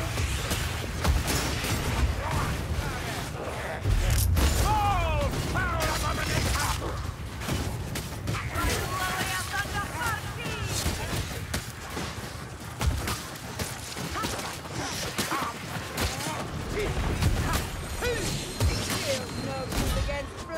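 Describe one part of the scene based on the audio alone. Swords slash and clash against enemies in quick bursts.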